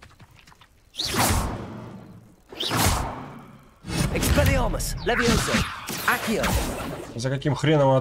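A spell crackles and bursts with a bright whoosh.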